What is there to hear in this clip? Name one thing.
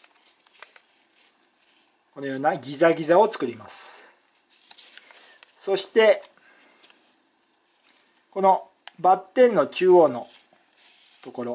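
Stiff paper rustles and creases as it is folded by hand.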